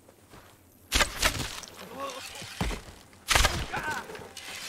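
A bow string twangs as arrows are shot.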